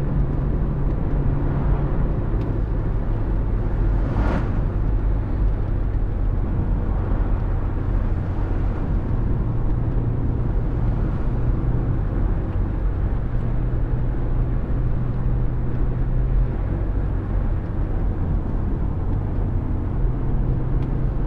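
A bus engine hums steadily at a low pitch while driving.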